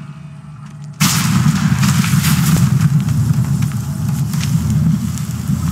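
A magical barrier hums and crackles loudly.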